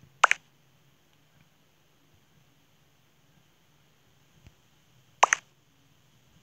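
A short electronic game chime sounds.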